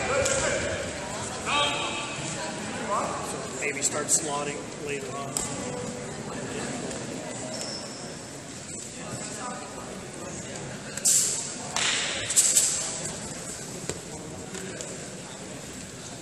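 Wrestlers' feet thump and shuffle on a mat in a large echoing hall.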